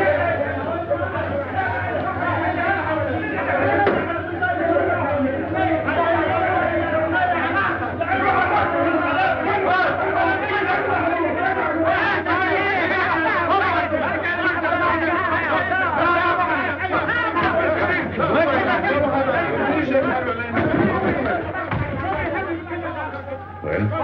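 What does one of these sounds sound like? A crowd of men talk and shout over one another.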